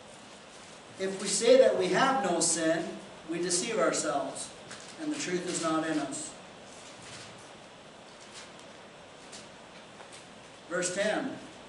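An older man speaks calmly into a microphone, pausing between phrases.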